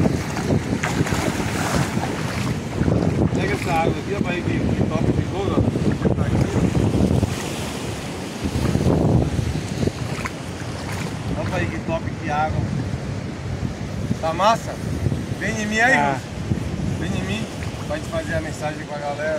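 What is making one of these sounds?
Waves wash over rocks outdoors in wind.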